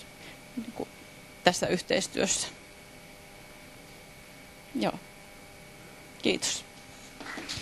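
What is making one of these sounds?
A woman speaks into a microphone in short bursts, in a large room.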